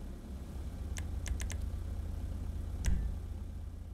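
A game menu clicks as options are selected.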